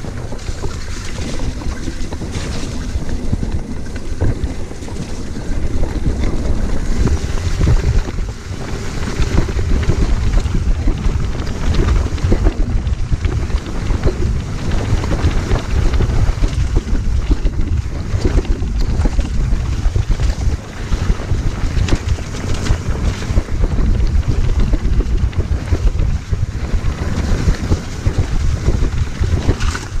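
Wind rushes loudly past as a mountain bike speeds downhill.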